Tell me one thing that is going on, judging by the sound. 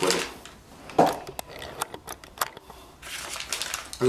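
A paper bag crinkles in a hand.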